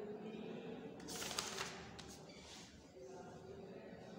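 Paper pages rustle as a book's page is turned.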